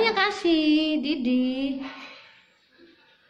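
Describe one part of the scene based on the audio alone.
A dog howls close by.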